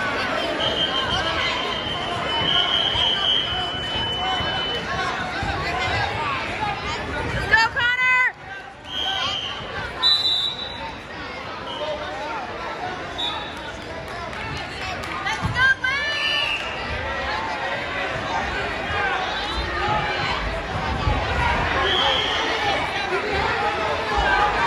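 A crowd of spectators chatters and shouts throughout in a large echoing gym.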